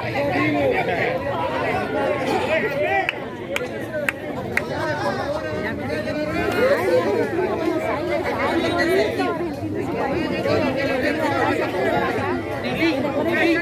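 A large crowd chatters and cheers close by outdoors.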